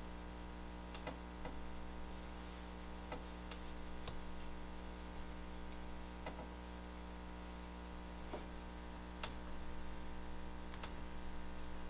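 Hard objects knock lightly against a workbench.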